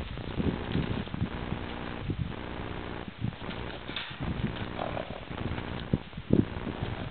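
A horse's hooves thud on dry dirt as it trots around.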